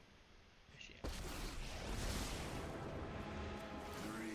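A game's magic effect whooshes and rumbles.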